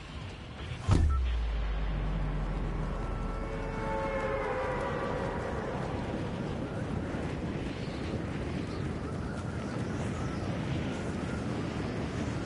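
Wind rushes loudly and steadily during a long freefall.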